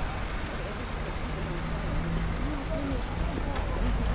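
Car engines hum and tyres roll on a road nearby.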